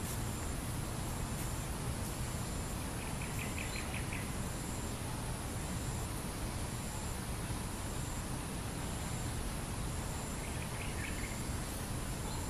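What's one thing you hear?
Footsteps walk softly across grass.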